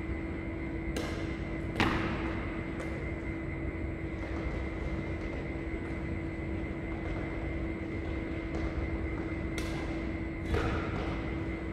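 A racket strikes a shuttlecock with sharp pops in a large echoing hall.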